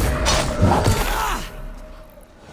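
A sword slashes through flesh with a heavy impact.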